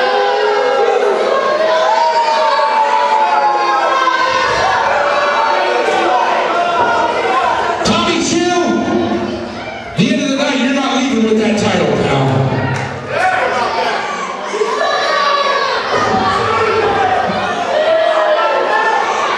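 A crowd chants and cheers loudly in a large echoing hall.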